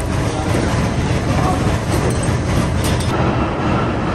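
A winding machine whirs as it turns.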